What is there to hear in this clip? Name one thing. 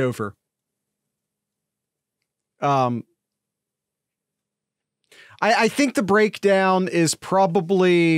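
A man speaks with animation into a close microphone, heard through an online call.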